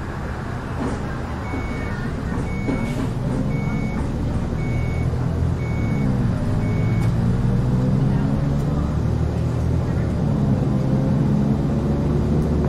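A bus engine revs up and rises in pitch as the bus pulls away.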